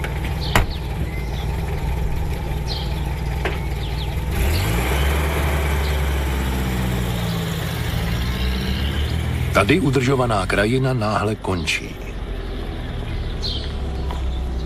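A vehicle engine idles steadily.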